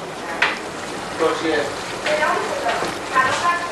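Sauce sizzles and bubbles in a pan.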